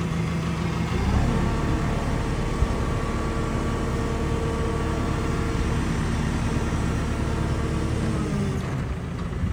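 A diesel engine revs up as a load is lifted.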